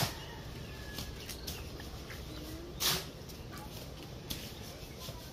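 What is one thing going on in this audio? A knife cuts into a green fruit with soft clicks.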